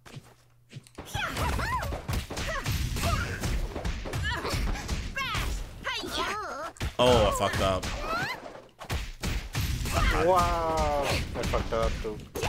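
Fighting game blows thud and crackle in quick bursts.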